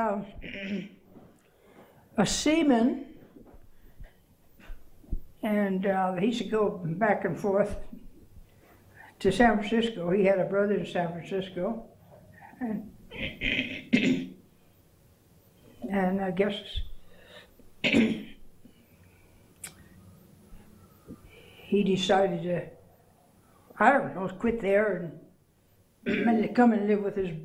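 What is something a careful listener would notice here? An elderly woman speaks calmly and slowly, close by, with pauses.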